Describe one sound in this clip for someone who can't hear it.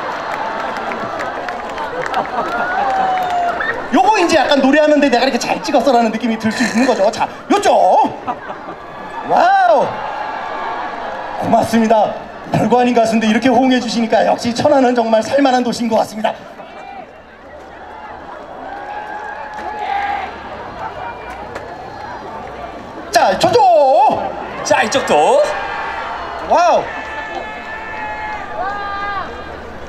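A young man talks into a microphone through loudspeakers.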